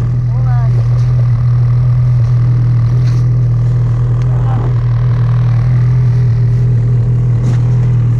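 Boots crunch and shuffle in deep snow.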